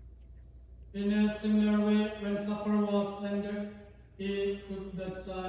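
A man chants a prayer in a sung voice through a microphone.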